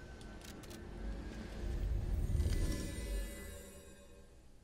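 A magical shimmer crackles and fades.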